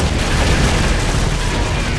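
Fire crackles and roars nearby.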